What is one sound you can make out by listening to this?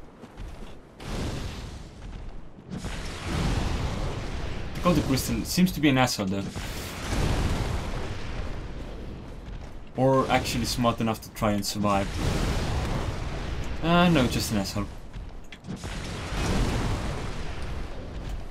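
Fireballs burst with a loud, rushing whoosh.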